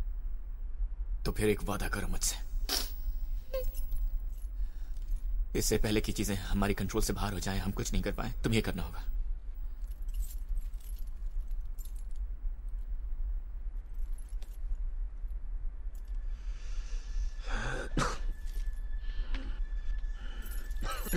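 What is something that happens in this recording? A woman sobs quietly, close by.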